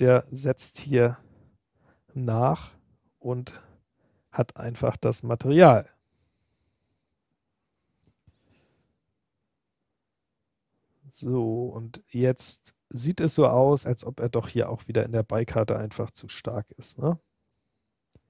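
A man talks calmly and closely into a microphone, in bursts with pauses.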